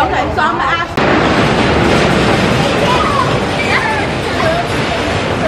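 Wind rushes loudly past during the ride.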